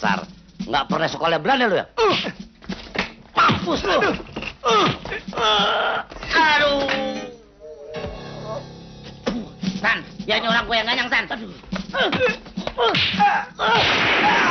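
A man shouts and laughs loudly.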